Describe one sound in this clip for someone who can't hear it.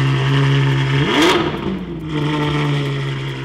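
A car engine revs sharply once and settles back.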